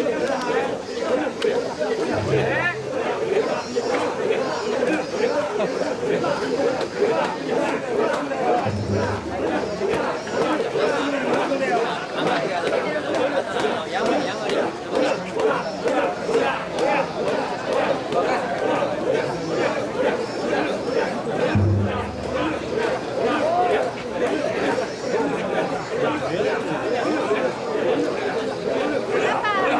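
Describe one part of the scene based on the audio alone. A large crowd of men chants loudly in rhythm outdoors.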